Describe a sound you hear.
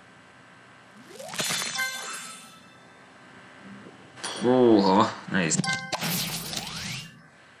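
A video game plays bright chiming tunes and effects.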